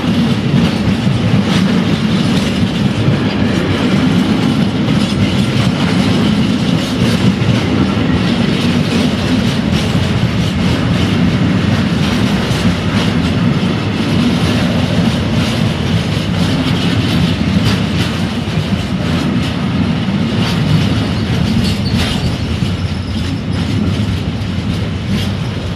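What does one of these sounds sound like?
A freight train rumbles past close by, its wheels rattling and clacking over the rail joints.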